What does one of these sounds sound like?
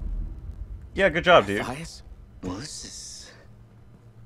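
A man asks a short question.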